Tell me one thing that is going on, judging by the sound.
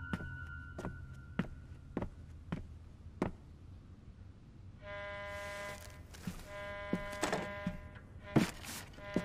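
Footsteps thud slowly.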